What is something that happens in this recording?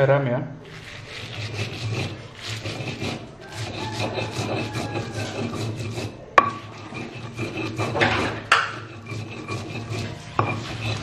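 A stone pestle grinds and crushes food against a stone mortar.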